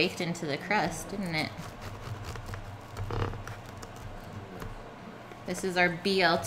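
A pizza cutter crunches through a crisp crust.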